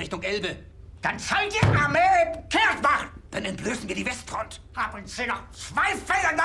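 An older man shouts angrily.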